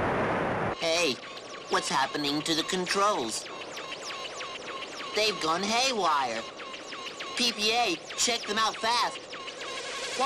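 A young boy speaks with animation over a headset radio.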